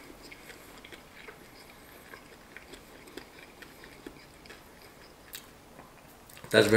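A man chews crunchy food close to a microphone, with soft wet mouth sounds.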